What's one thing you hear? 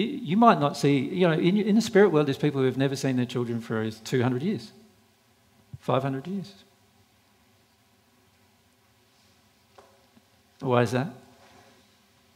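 A man speaks calmly through a headset microphone, with pauses.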